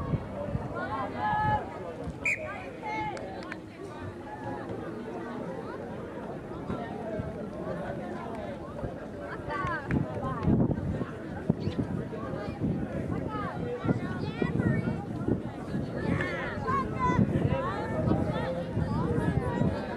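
Young women players call out to each other in the distance.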